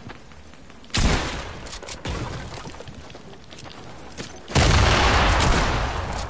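Loud game gunfire and explosions burst out.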